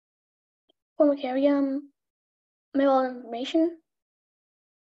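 A boy speaks briefly over an online call.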